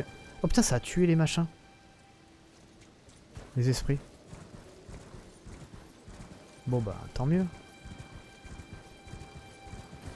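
A horse gallops over soft ground.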